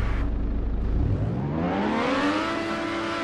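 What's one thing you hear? A racing car engine revs up, rising in pitch.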